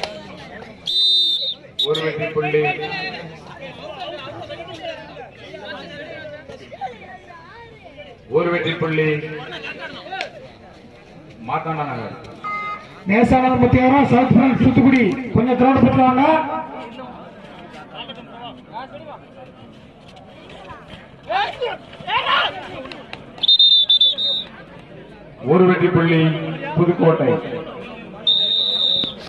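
A referee's whistle blows shrilly in short bursts.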